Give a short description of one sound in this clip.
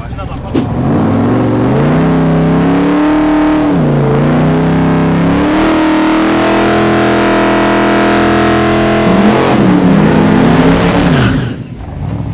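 A loud car engine revs hard and roars.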